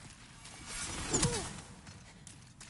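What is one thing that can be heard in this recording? A metal blade swings and clangs.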